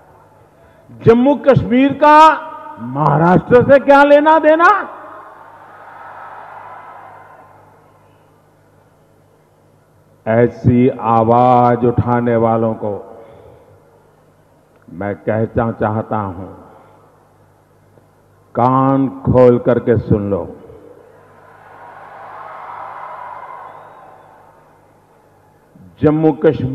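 An elderly man speaks forcefully through a loudspeaker, in bursts with pauses.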